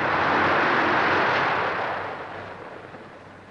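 The radial engine of a biplane roars.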